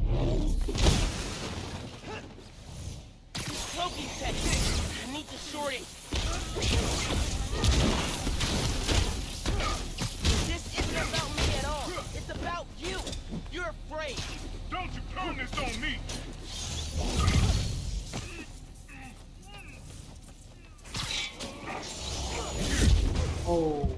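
Punches, thuds and energy blasts crash in a video game fight.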